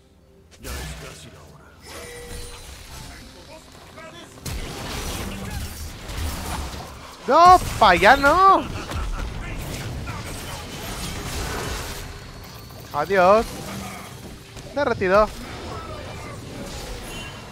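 Spell blasts and sword hits crackle and thud in a video game battle.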